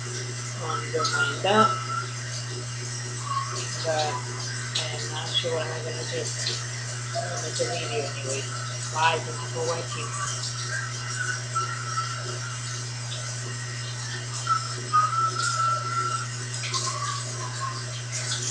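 A young woman talks casually, close up.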